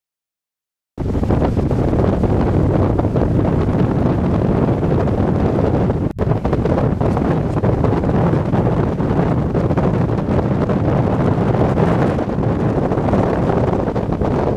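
Strong wind roars across the microphone outdoors.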